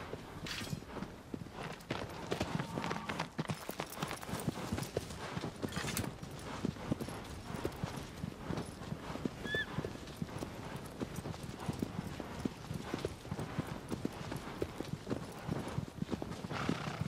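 A horse gallops, its hooves thudding rapidly on grass.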